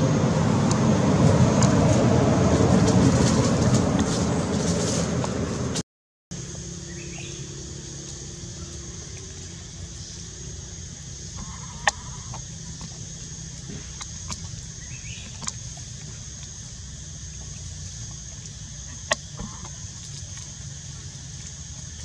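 Dry leaves rustle and crackle under a small monkey's hands and feet.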